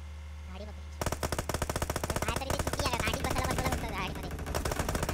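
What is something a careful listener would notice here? Rifle shots fire in rapid bursts in a video game.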